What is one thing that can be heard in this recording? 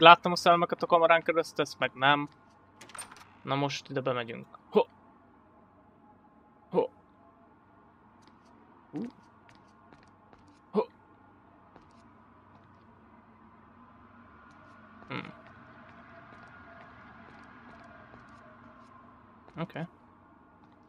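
Footsteps tap slowly on a hard tiled floor.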